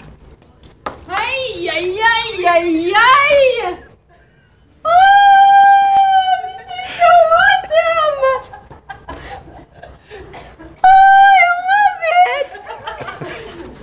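A young woman sings loudly and playfully close by.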